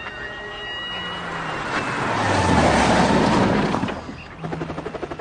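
A car drives past, its engine rising to a roar and fading.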